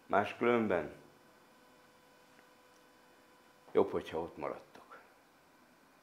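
An elderly man speaks calmly and close into a microphone, with pauses.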